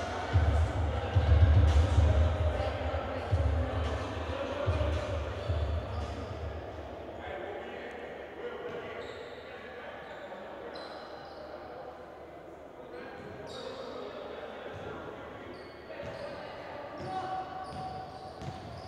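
A few people chatter quietly in a large echoing hall.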